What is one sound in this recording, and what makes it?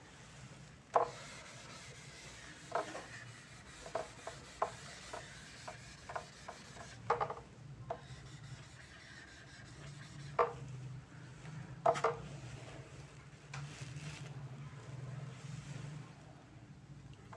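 A sponge rubs across a whiteboard.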